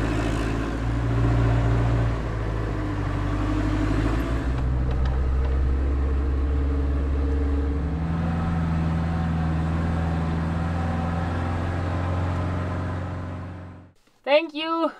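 A van engine hums steadily while driving.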